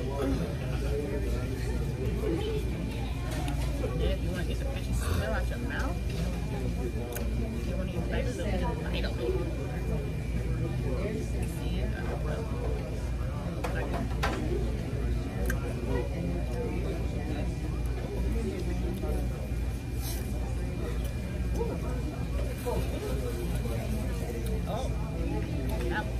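A middle-aged woman talks casually close to the microphone.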